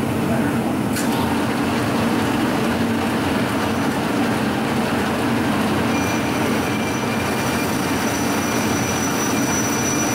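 A cutting tool scrapes and whines against spinning metal.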